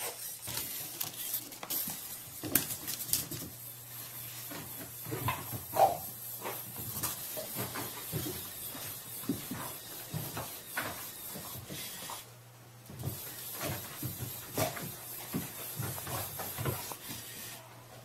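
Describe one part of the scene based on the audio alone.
A dog's paws thump and scrabble on a rug as it plays.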